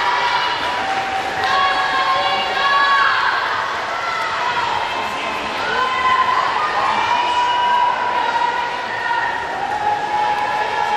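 Swimmers splash through water in an echoing hall.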